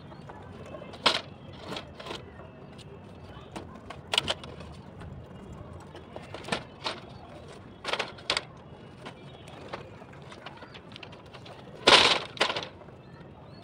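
Wooden frames knock and clatter as they are moved and set down.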